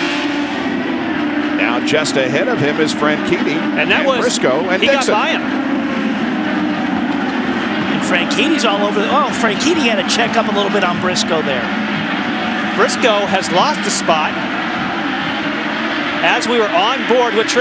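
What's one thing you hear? Several race cars roar past together on a track.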